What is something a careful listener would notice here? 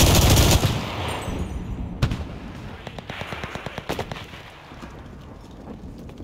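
Footsteps crunch over rubble and broken stone.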